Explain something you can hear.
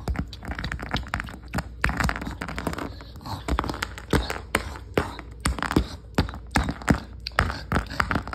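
Plastic toys knock and clatter against a hard floor.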